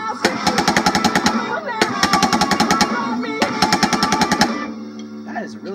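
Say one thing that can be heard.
Drums pound rapidly through a television speaker.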